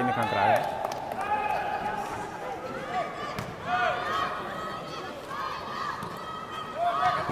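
Sneakers squeak sharply on a hard court, over and over.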